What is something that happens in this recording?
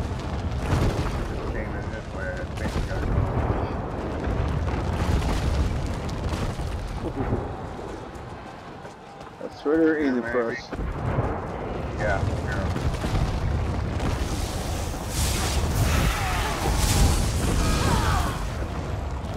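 Flames whoosh and crackle.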